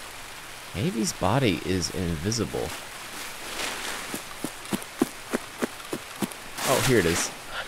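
Footsteps tread through tall grass.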